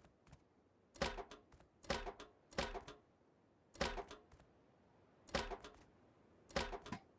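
Building pieces knock and thud into place several times.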